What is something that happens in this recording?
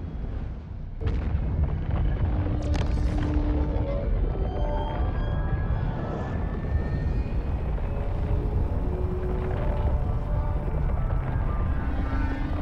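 A spaceship's engines rumble with a deep, steady roar.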